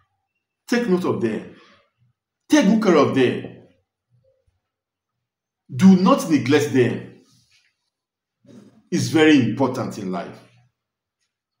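A man speaks close by in short, lively bursts with pauses between them.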